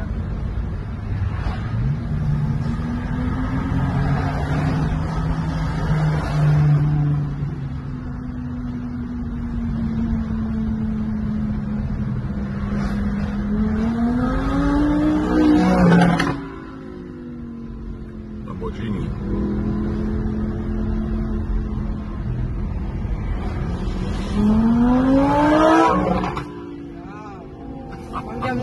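Tyres rumble on a road.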